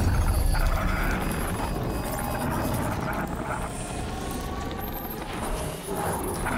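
An energy weapon fires with crackling, buzzing bursts.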